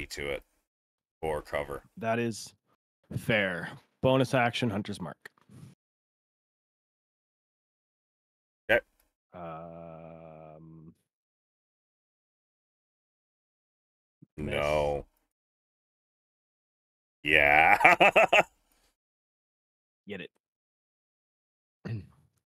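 A man talks with animation into a close microphone, in short bursts.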